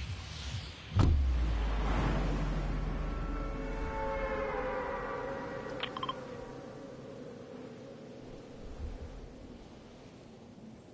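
Wind rushes loudly past a skydiving game character and slowly fades.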